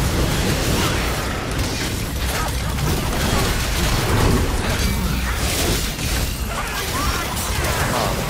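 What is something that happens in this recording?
Sword blades slash and whoosh rapidly.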